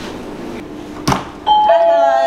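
A door swings open with a click.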